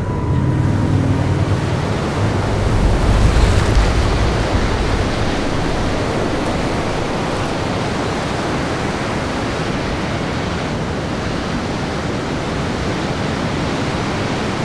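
Ocean waves wash and break steadily on a beach.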